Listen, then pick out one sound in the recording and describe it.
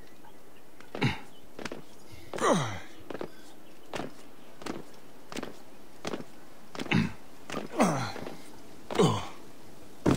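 Hands and feet scrape and thud against stone while climbing.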